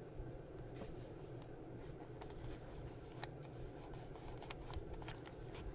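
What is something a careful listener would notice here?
Paper rustles and taps as hands handle cards.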